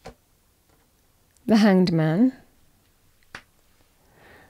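A playing card is laid down on a table with a soft tap.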